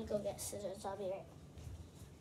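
A young girl sings close by in a high voice.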